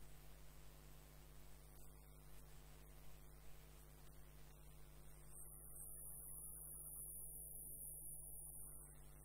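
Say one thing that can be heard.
A hollowing tool scrapes into spinning wood.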